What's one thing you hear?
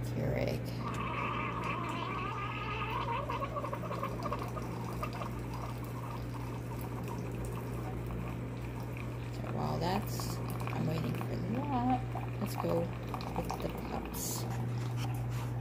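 A coffee machine hums steadily.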